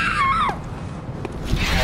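Footsteps crunch slowly over grass and gravel.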